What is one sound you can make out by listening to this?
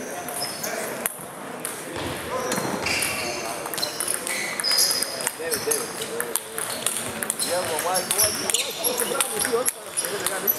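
A table tennis ball clicks quickly back and forth between paddles and the table.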